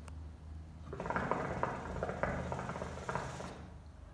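Water bubbles and gurgles loudly in a hookah.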